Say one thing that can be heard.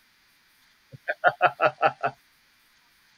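A middle-aged woman laughs over an online call.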